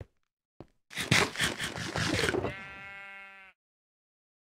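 A game box opens with a creaking sound.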